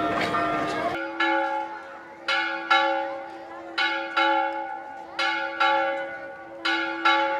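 A large church bell rings out in repeated loud strikes, each ringing on and fading.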